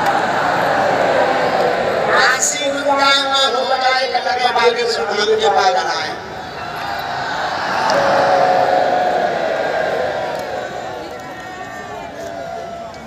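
A large outdoor crowd cheers and chants loudly.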